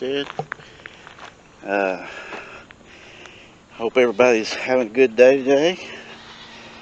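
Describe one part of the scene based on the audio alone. A middle-aged man talks casually, close by, outdoors.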